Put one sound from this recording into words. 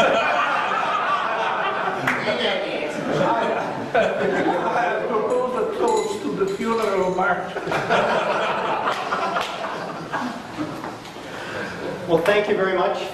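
A man speaks clearly to a group.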